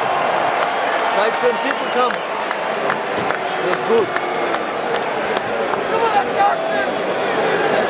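A young man talks excitedly close to the microphone.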